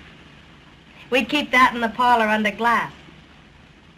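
A woman answers softly and close by.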